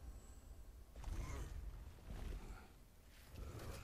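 Heavy thuds sound as a man climbs over rocks.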